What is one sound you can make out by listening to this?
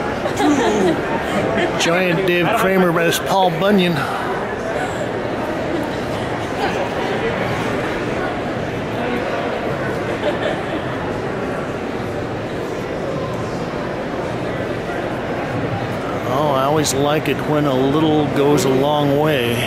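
A crowd murmurs and chatters in a large, echoing hall.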